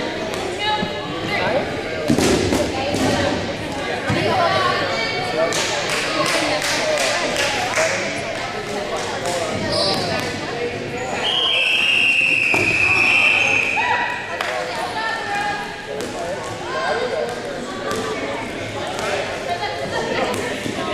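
Rubber balls thud and bounce on a wooden floor in a large echoing gym.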